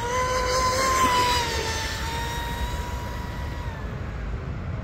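A small motorboat's engine whines at a high pitch and fades as it speeds away.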